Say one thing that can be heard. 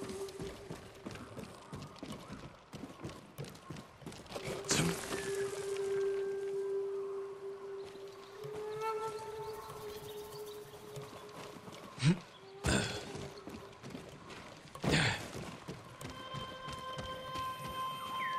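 Footsteps thud on wooden roof tiles.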